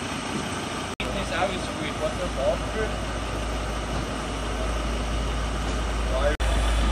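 A truck engine idles close by with a low rumble.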